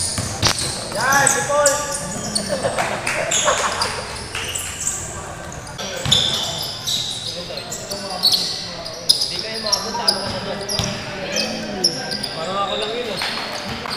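Young men shout and call out across an echoing hall.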